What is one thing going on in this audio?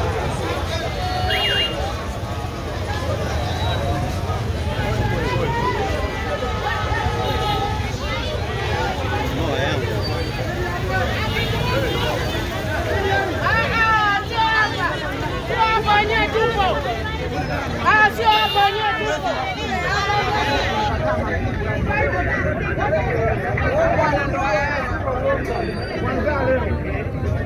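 A crowd of men and women chatters and calls out all around outdoors.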